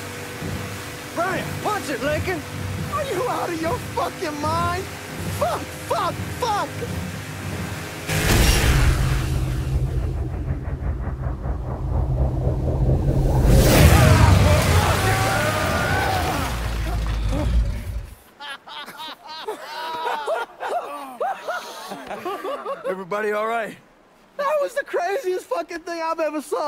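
A man talks excitedly up close.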